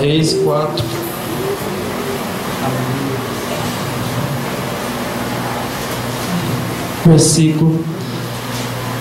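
A young man speaks into a microphone over loudspeakers in an echoing room.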